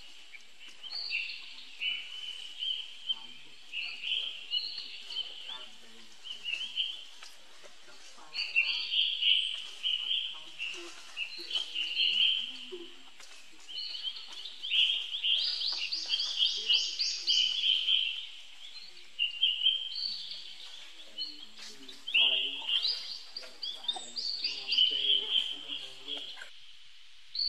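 A baby monkey screams and squeals loudly over and over.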